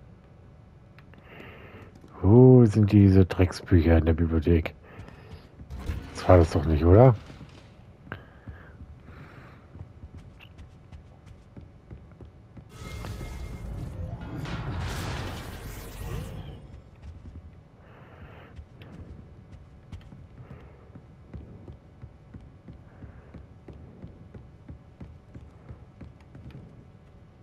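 Footsteps tread softly on a wooden floor.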